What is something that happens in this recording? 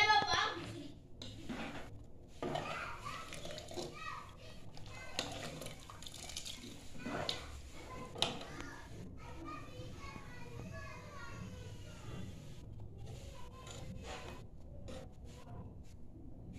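A ladle stirs and sloshes liquid in a metal pot.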